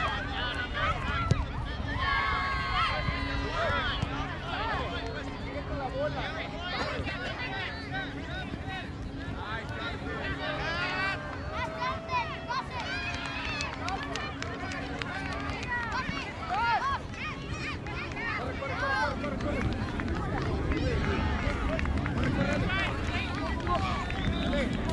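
A crowd of spectators chats and calls out outdoors.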